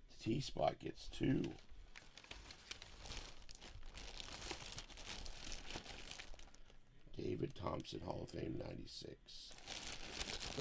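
A plastic bag crinkles and rustles as it is handled up close.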